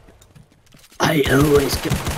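A pistol fires in quick shots.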